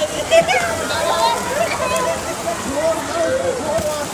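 Water splashes loudly as a person is tossed into a pool.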